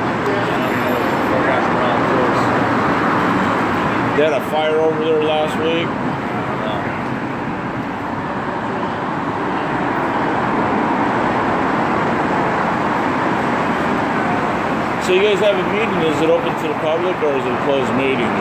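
Steady traffic rumbles past outdoors.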